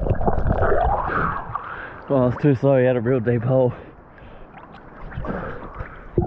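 Water laps gently at the surface.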